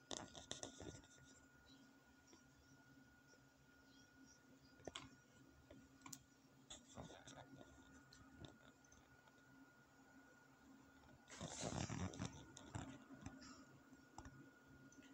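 Cloth rustles and rubs right against the microphone.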